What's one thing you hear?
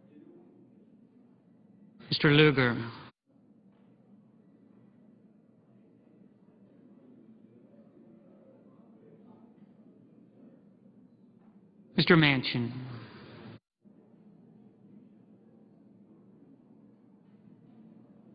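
Many men murmur quietly in a large room.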